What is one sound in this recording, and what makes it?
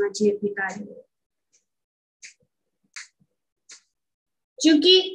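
An elderly woman speaks calmly over an online call.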